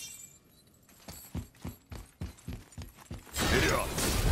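Heavy footsteps thud at a quick run.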